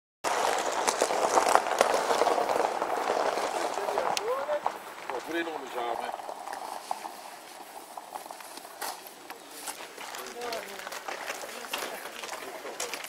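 A crowd of young men chatters outdoors.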